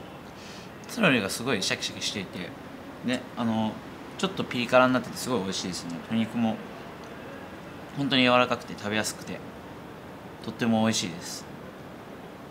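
A young man speaks close by, calmly and with pauses.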